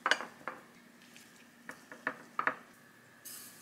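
Sliced peppers clatter softly as a gloved hand moves them.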